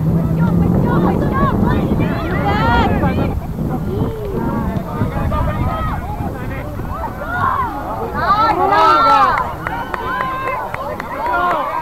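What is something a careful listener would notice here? Young soccer players shout and call out across an open field outdoors.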